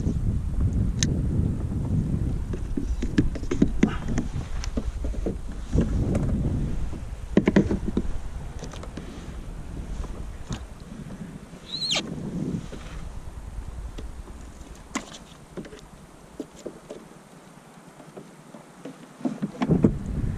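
Plastic gear clicks and knocks as a man handles the fishing gear.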